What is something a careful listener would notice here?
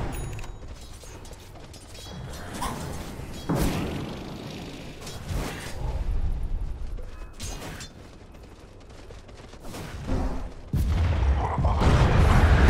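Magic spells crackle and whoosh during a video game battle.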